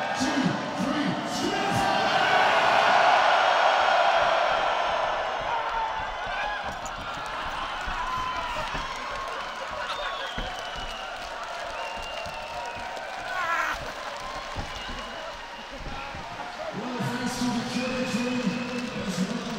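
A huge crowd cheers and roars in a vast open stadium.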